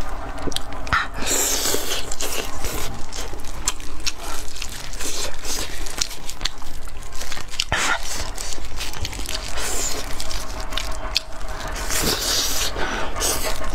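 Meat tears from a bone with a wet rip.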